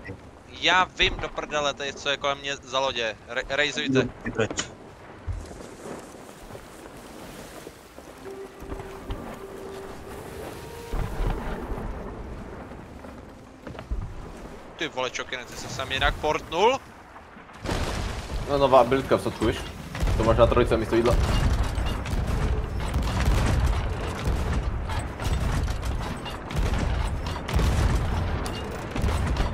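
Ocean waves rush and splash against a wooden ship.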